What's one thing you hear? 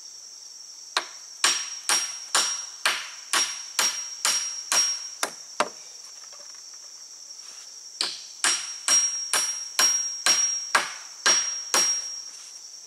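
A hammer strikes a nail into wood in quick, steady blows.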